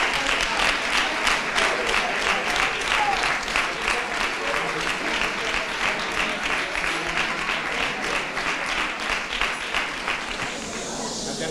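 A crowd claps in quick rhythm in an echoing hall.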